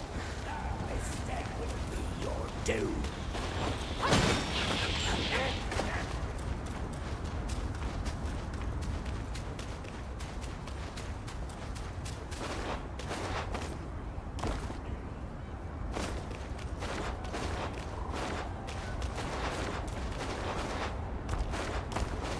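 Footsteps crunch on dry, rocky ground.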